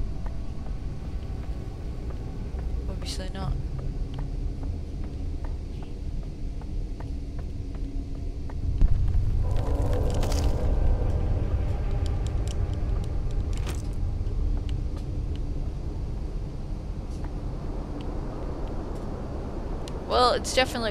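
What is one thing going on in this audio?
A young woman speaks quietly into a microphone.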